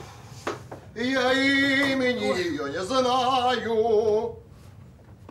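A man shouts loudly and with high pitched emotion close by.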